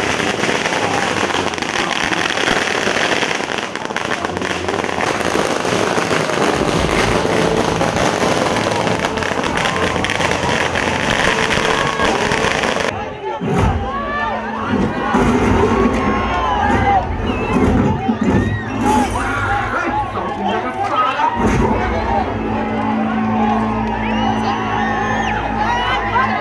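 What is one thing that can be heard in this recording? A large crowd shouts and cheers loudly.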